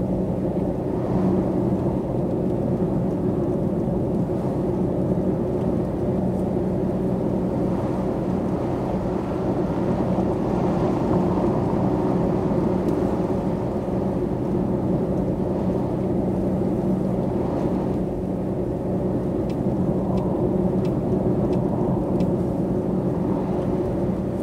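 Tyres roll on the road with a constant rumble.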